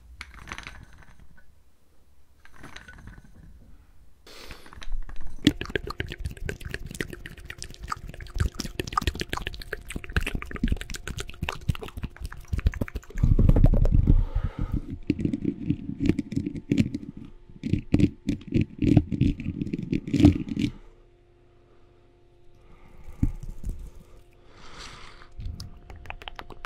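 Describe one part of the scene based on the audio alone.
A young man speaks softly close to a microphone.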